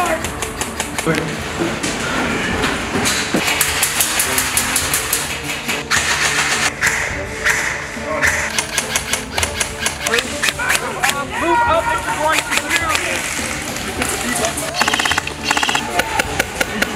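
Airsoft rifles fire in rapid bursts of sharp clicks.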